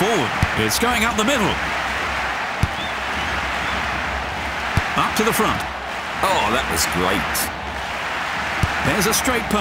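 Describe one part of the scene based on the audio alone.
A football is kicked with short, dull thuds.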